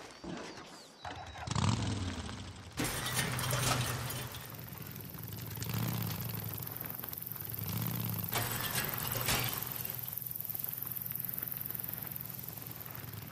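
A dirt motorcycle engine starts and revs as the bike pulls away and rides over rough ground.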